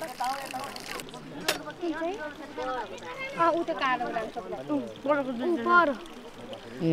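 Children talk nearby.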